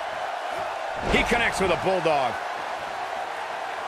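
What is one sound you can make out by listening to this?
A body slams onto a wrestling mat with a thud.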